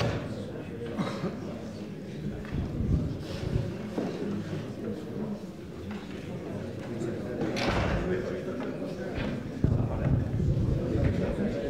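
A man speaks into a microphone over loudspeakers, echoing in a large hall.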